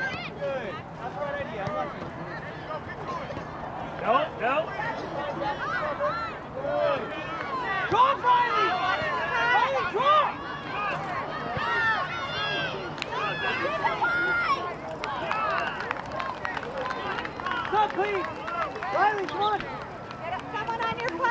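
Young girls shout and call to each other outdoors.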